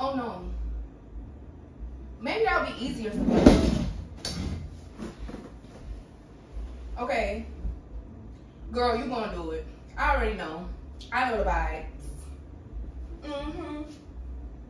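A woman talks on the phone nearby, with animation.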